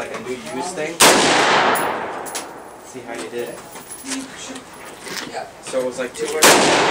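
A rifle fires loud single shots that echo outdoors.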